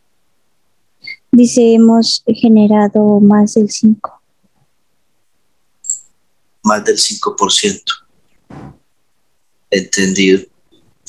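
A man speaks calmly through a headset microphone on an online call.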